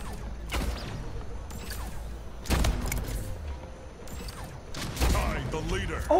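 A futuristic gun fires sharp blasts.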